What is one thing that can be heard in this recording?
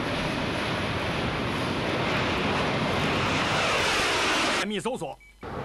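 Jet engines roar as fighter planes take off.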